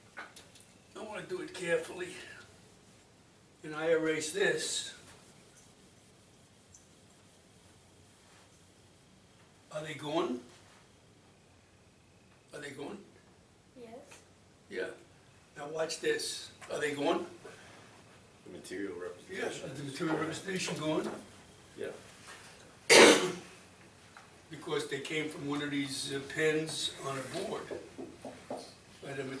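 A middle-aged man speaks calmly nearby in a small room.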